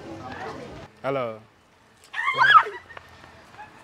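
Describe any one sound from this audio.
Young women scream loudly in fright.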